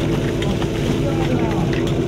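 Water splashes as men scoop it from a tank.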